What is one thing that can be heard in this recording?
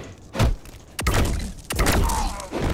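A magical blast crackles and booms.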